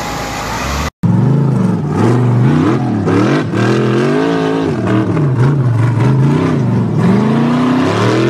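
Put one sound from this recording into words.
An off-road buggy engine revs hard, rising and falling.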